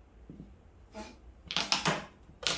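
Mahjong tiles clack and clatter against each other on a table.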